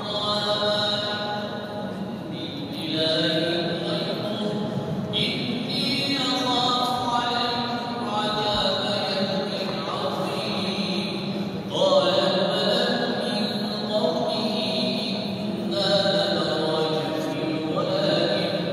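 A crowd of men chants in long, melodic phrases, echoing through a large hall.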